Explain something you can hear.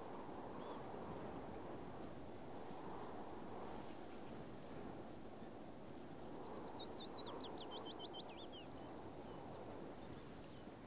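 Footsteps swish steadily through tall grass.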